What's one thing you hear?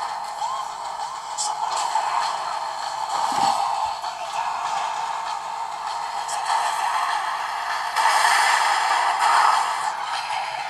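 Tyres screech as cars drift around bends.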